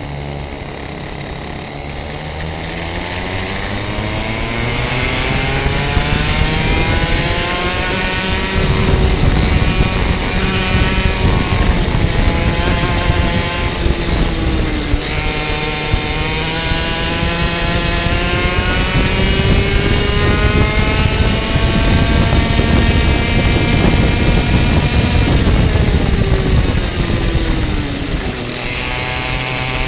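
A kart engine whines close by, its pitch rising as it speeds up and falling as it slows.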